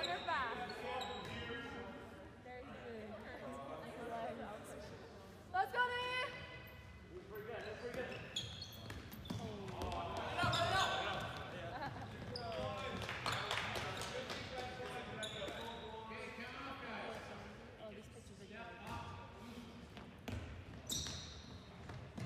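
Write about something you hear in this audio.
Sneakers squeak sharply on an echoing gym floor.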